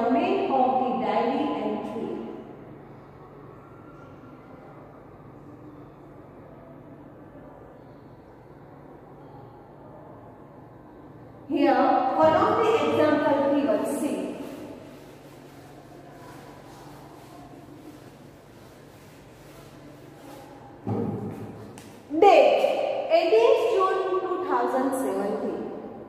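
A young woman speaks clearly and calmly, explaining to listeners in a room.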